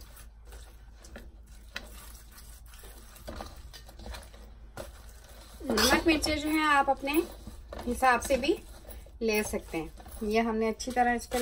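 Hands rub and squish a raw chicken in a metal bowl.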